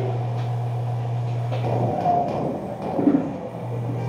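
A bus crashes and scrapes over rough ground.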